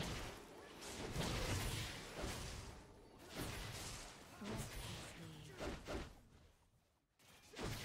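Video game fight sounds clash and zap.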